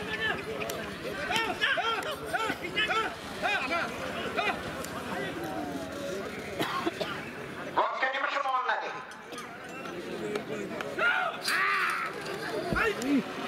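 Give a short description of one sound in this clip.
Men shout and call out excitedly outdoors.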